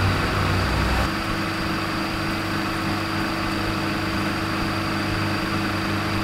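A screwdriver scrapes on a metal screw.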